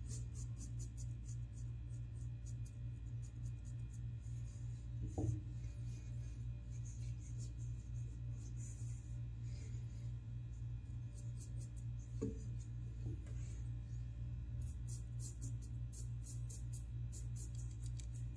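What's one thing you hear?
A razor scrapes over stubble in short, quick strokes.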